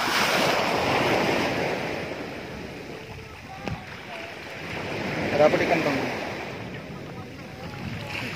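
Legs splash through shallow water.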